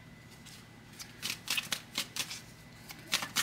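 Playing cards shuffle and slap together in a hand.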